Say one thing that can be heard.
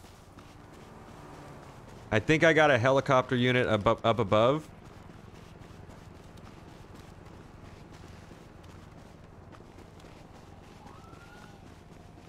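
Footsteps crunch quickly on dry dirt and brush.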